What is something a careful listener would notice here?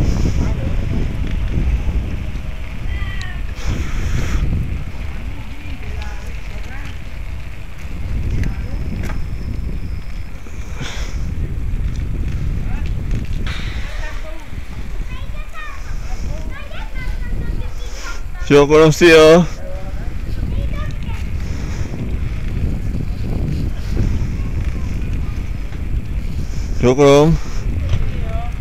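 Wind buffets loudly while riding outdoors.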